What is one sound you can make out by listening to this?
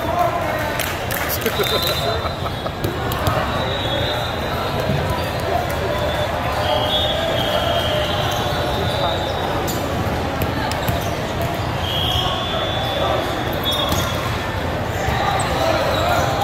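A volleyball is served and hit with sharp slaps.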